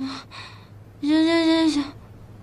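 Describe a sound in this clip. A young woman mumbles sleepily.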